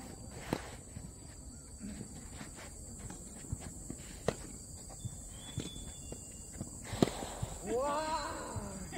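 Sneakers shuffle and scuff on a hard court.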